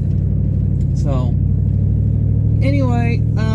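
A man speaks casually, close by.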